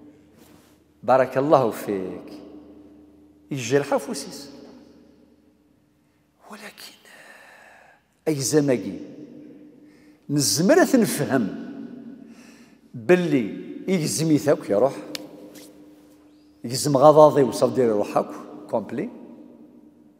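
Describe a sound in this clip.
An elderly man speaks with animation into a microphone, in bursts with pauses, in an echoing room.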